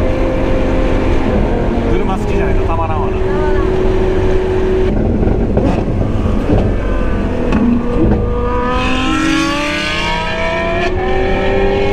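Wind roars steadily past an open car.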